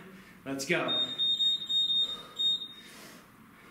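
A timer beeps in a steady high tone.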